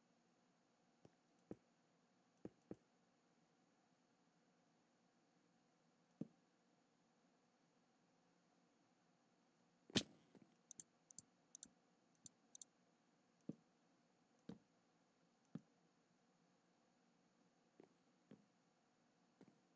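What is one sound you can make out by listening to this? Wooden blocks are set down with short, soft knocks.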